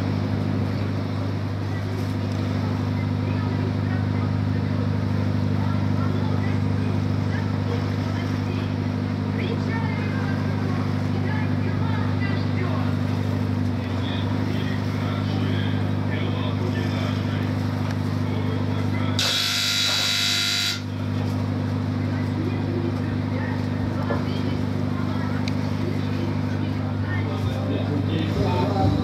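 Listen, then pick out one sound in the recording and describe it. Water splashes along a ship's hull.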